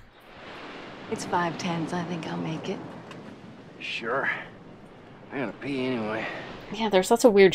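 A man speaks quietly in a dramatic scene.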